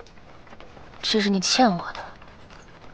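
A young woman speaks softly and coldly, close by.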